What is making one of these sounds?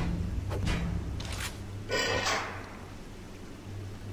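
A metal door slides open with a clank.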